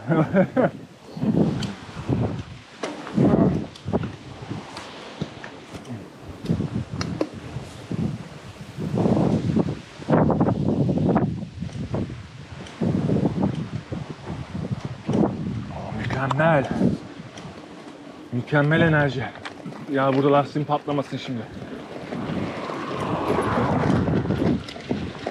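Bicycle tyres roll along a road.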